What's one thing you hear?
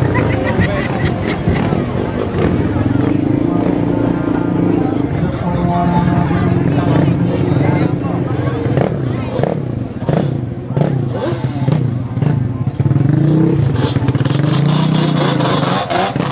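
A car engine idles and revs nearby.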